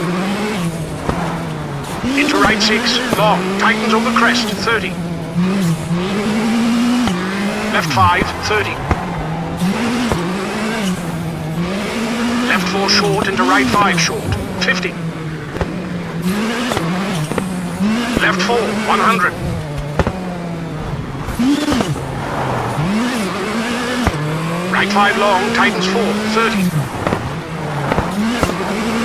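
A rally car engine revs hard, rising and dropping in pitch with each gear change.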